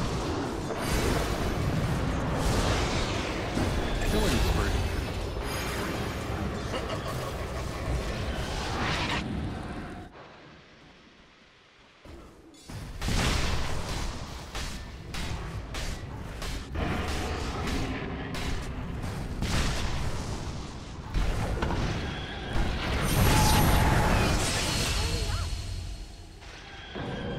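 Magic spells crackle and blast in a fantasy battle.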